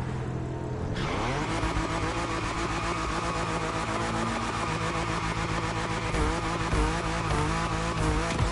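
Tyres screech as a car spins its wheels.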